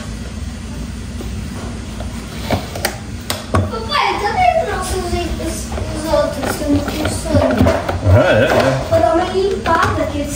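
A screwdriver scrapes and taps against plastic.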